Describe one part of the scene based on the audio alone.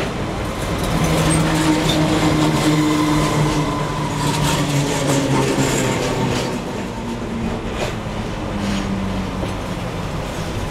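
A train's motor hums with a steady low drone.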